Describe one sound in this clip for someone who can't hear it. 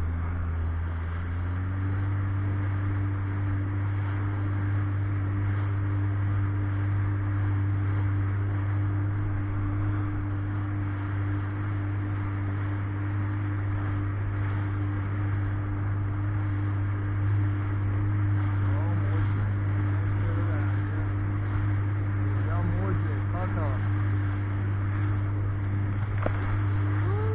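A jet ski engine drones steadily and rises in pitch as it speeds up.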